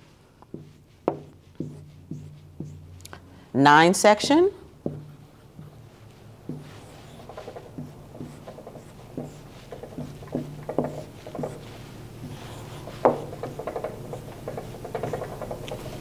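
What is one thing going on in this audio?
A marker taps against a whiteboard.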